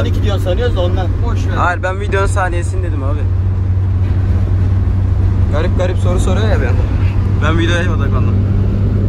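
A young man talks and laughs with animation close by.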